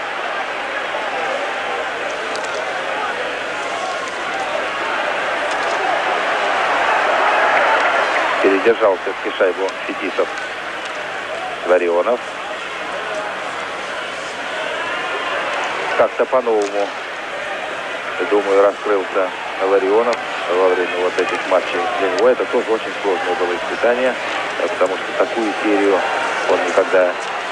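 A large crowd roars and cheers in a big arena, swelling and then easing off.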